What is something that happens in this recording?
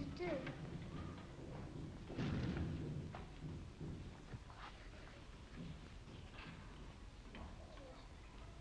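A woman speaks softly and kindly, close by.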